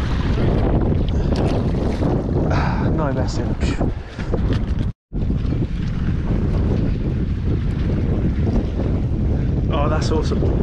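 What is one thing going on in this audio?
Strong wind rumbles and buffets outdoors on open water.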